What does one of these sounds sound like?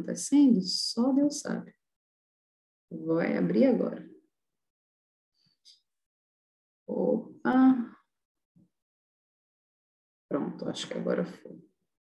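A young woman speaks calmly in short bursts, close to a webcam microphone.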